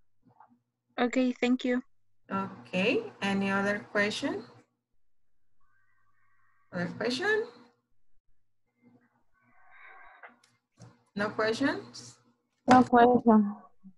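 A woman speaks calmly over an online call, in short bursts.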